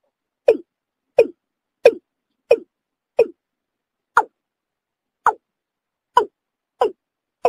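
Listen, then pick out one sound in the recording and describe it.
A bird gives short, sharp calls over and over.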